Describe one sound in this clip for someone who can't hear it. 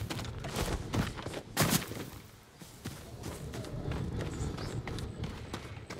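Footsteps run on dirt and grass.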